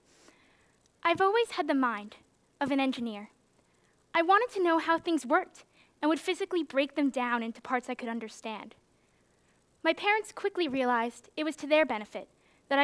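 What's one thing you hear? A young woman speaks calmly through a microphone in a large hall.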